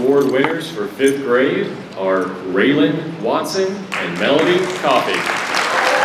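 A man speaks into a microphone over a loudspeaker in a large hall.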